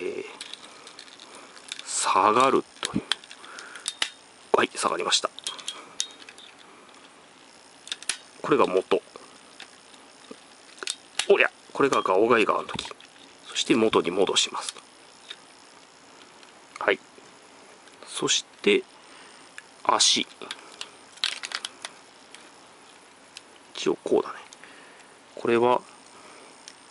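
Small plastic joints click and snap as a toy figure is posed by hand.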